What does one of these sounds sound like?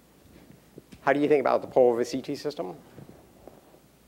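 An elderly man speaks to an audience through a microphone in a large lecture hall.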